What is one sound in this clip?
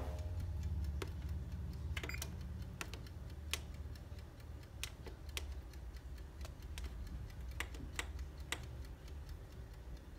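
Oven control buttons beep as they are pressed.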